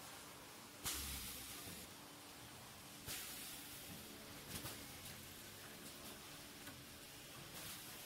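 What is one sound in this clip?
A packaging machine hums and whirs steadily.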